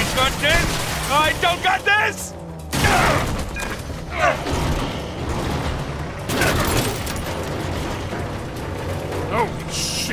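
A vehicle crashes through wooden crates and metal roofing with loud bangs and clatter.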